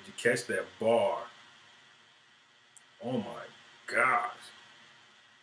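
A young man speaks with animation close to a microphone.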